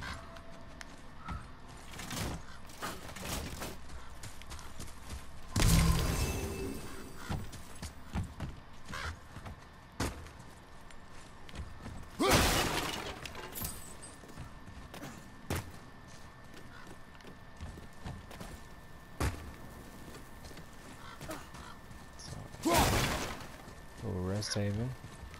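Heavy footsteps crunch on stone and wooden boards.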